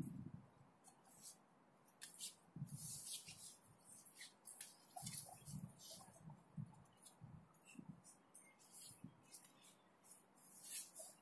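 Shoes scuff and shuffle on artificial turf.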